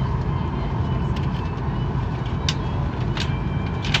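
A laminated card rattles and scrapes in a hand.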